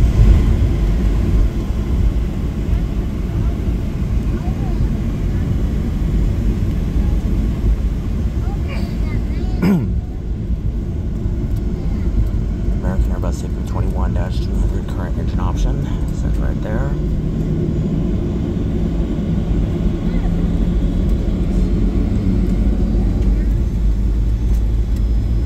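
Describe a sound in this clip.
Jet engines rumble steadily as an airliner taxis, heard from inside the cabin.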